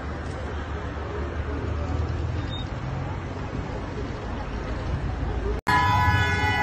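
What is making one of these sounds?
Vehicle engines rumble on a street below.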